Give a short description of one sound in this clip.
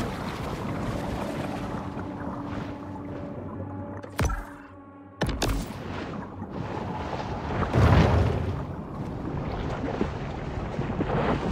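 Muffled underwater ambience rumbles steadily.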